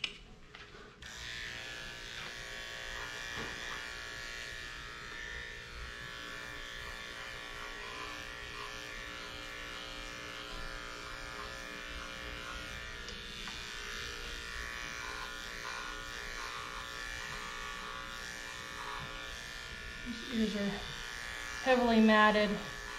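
Electric clippers buzz steadily, close by.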